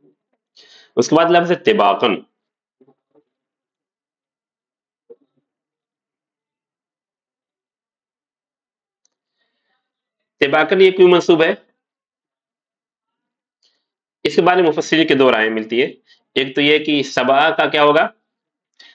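A man speaks calmly into a close microphone, in short bursts with long pauses.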